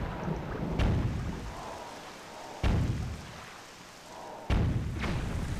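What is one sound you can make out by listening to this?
A cannon fires several times with deep booms.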